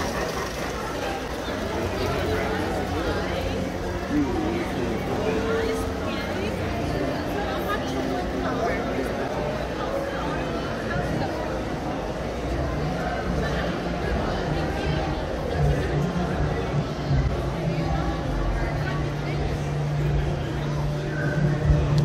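A crowd of men and women chatters in the background.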